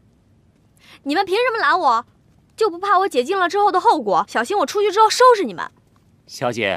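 A young woman speaks sharply and with animation, close by.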